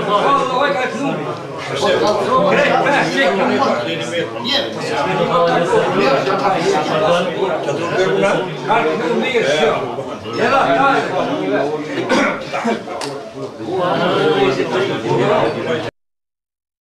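Several elderly men talk and laugh together close by, in a lively murmur.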